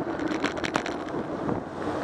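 A streetcar passes by.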